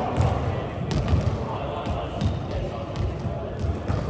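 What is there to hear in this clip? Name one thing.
A volleyball bounces on a wooden floor.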